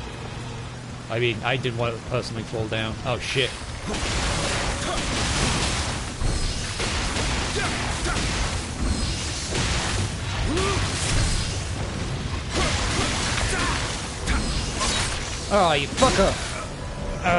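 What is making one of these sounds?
Swords clash and slash in rapid combat.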